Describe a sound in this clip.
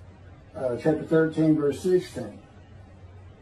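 An older man speaks calmly and slowly, close to the microphone.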